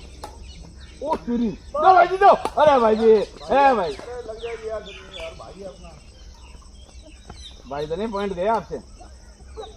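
Men call out loudly during a game, heard from a distance.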